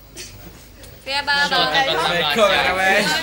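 A group of teenagers shouts a greeting together, close by.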